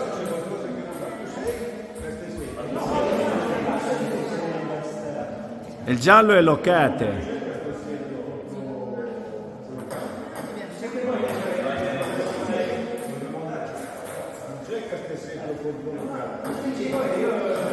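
Several men talk and chat in a large echoing hall.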